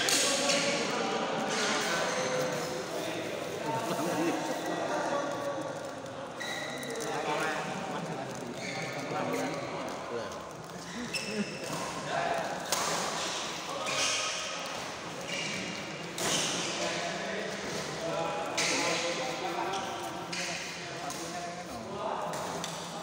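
Men chatter nearby.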